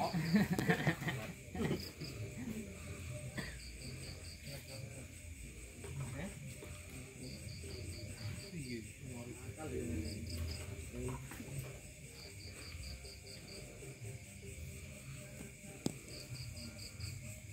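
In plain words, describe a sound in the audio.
Several young men chat outdoors a short way off.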